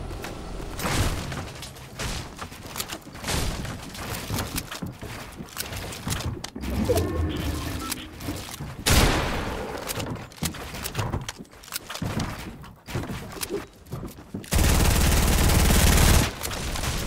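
Building pieces snap into place with quick clacks and thuds.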